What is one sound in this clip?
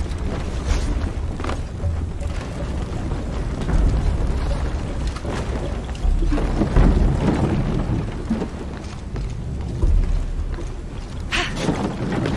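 Footsteps thud on creaking wooden planks.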